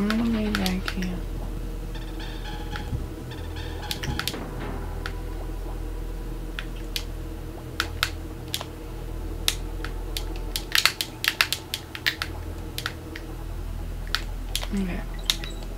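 Short, sharp video game sound effects pop and click again and again.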